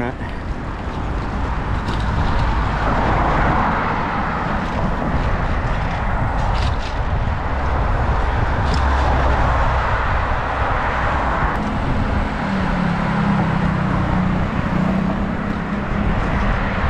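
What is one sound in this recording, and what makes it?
Wind rushes loudly outdoors.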